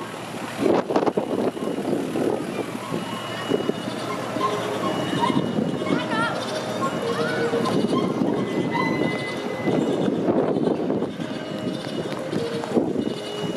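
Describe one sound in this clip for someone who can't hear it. A crowd of people chatters and calls out nearby outdoors.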